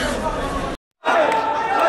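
A young man speaks cheerfully close by.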